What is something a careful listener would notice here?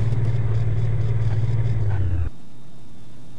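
A car engine hums steadily, then cuts off.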